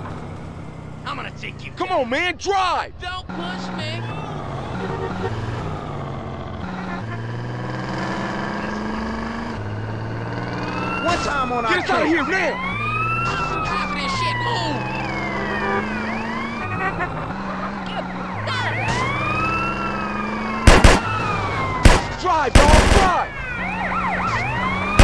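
A police siren wails and warbles up and down.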